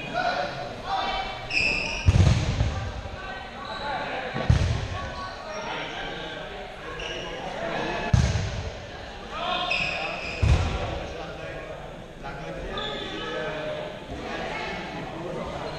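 Young people chatter and call out in a large echoing hall.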